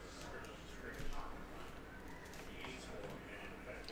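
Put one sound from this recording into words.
Trading cards rustle and tap softly on a table.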